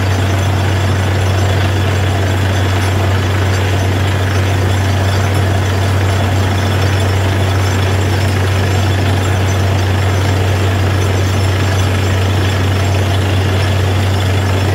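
A drilling rig's diesel engine drones loudly and steadily close by.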